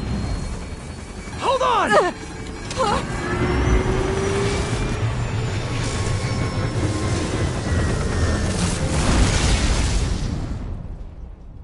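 A helicopter's rotor thumps steadily.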